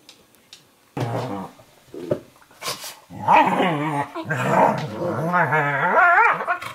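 Two dogs growl while playing.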